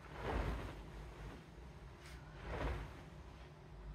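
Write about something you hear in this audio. A duvet whooshes as it is shaken out over a bed.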